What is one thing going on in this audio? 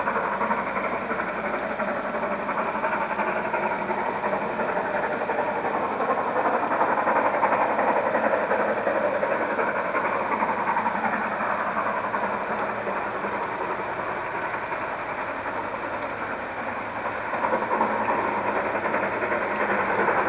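A steam locomotive chuffs as it approaches.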